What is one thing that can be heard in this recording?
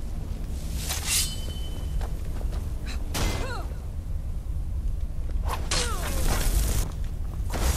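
Metal weapons clash and strike.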